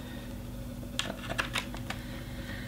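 A cable plug clicks into a laptop's port.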